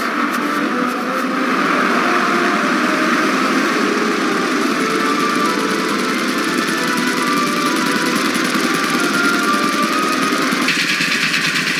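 A twin-engine plane's propellers drone steadily.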